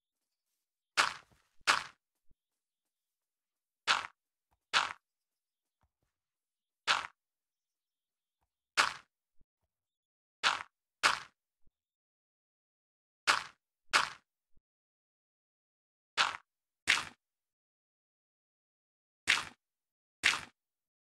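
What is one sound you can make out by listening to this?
Blocks are placed one after another with short, crunchy thuds.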